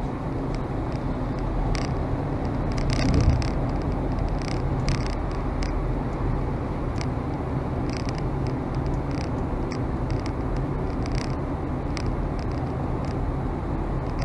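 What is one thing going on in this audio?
Road noise rumbles steadily inside a moving car.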